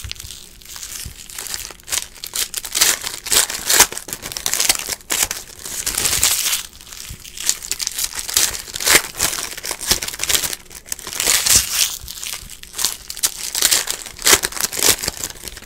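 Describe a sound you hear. Foil wrappers crinkle and rustle in hands.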